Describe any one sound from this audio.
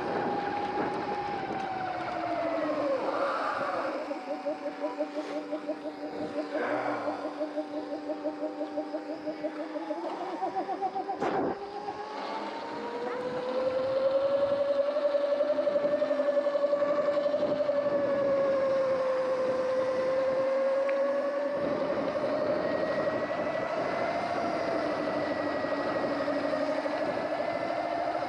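An electric motor whines steadily, its pitch rising and falling with speed.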